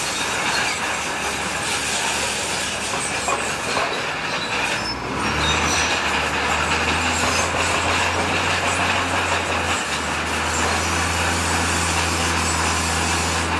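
A bulldozer's tracks clank and scrape over the ground.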